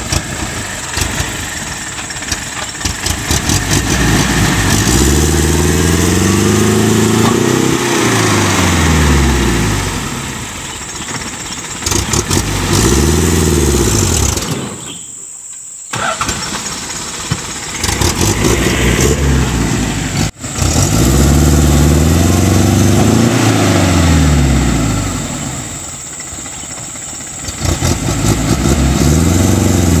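Truck tyres spin and churn through thick mud.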